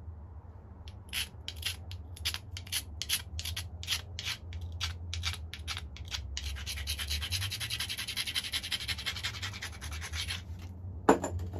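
A stone scrapes and grinds against the edge of a flint blade in short, quick strokes.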